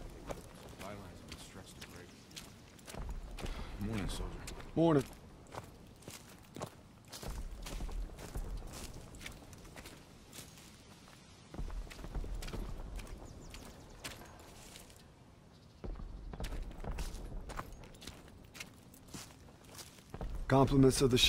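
Footsteps crunch steadily on forest ground.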